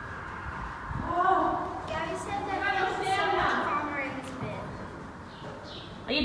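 A young girl talks nearby.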